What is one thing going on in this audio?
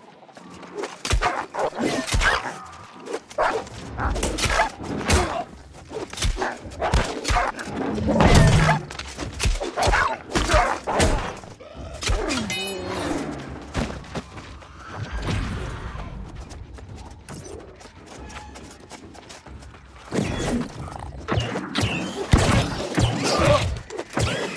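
Sword blows strike hard, again and again.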